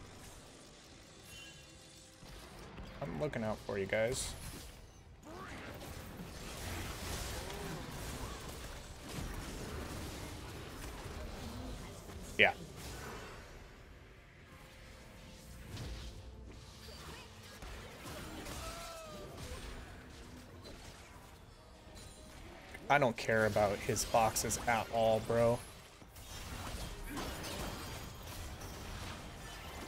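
Game fight effects whoosh and clash throughout.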